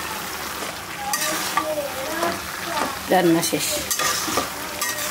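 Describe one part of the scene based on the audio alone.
A metal spatula scrapes and stirs food in a metal pan.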